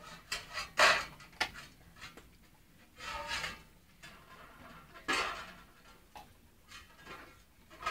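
A puppy licks and noses a metal bowl, making it clatter.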